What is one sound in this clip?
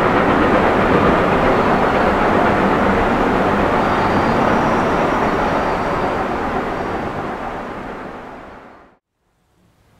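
A steam train chugs loudly along the track and fades away.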